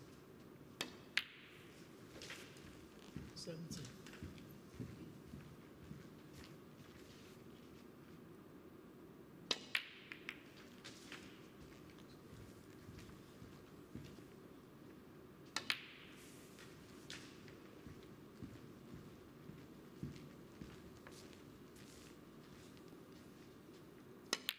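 A cue strikes a snooker ball with a sharp tap.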